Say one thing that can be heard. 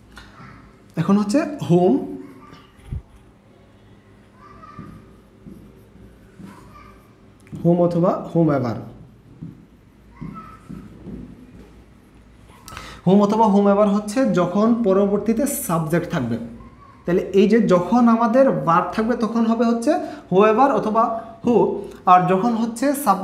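A young man speaks clearly and steadily, close by, explaining.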